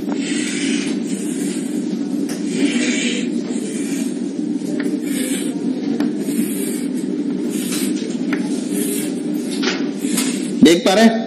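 Chalk scratches and taps on a board in quick strokes.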